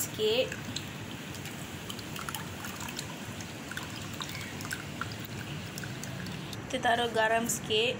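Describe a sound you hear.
Wet pulp squelches as hands squeeze it into a pot of liquid.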